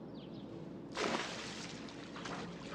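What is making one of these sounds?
A cat splashes into water.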